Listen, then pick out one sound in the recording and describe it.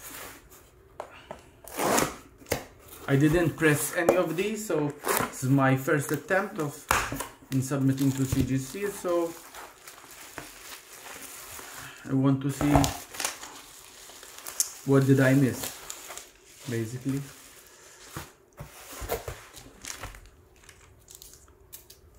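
Cardboard flaps scrape and rustle as a box is opened.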